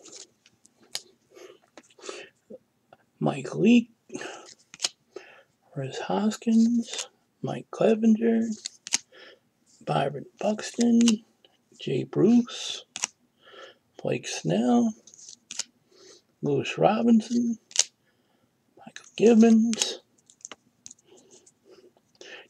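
Trading cards slide against each other as they are flipped by hand.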